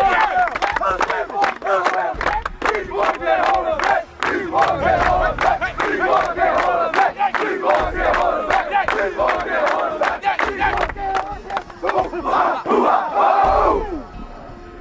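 A group of young men chants and shouts loudly in unison.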